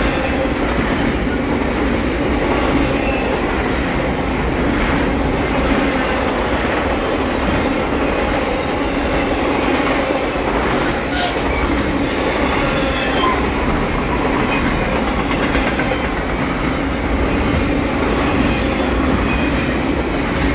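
A long freight train rumbles past close by, its wheels clattering and squealing on the rails.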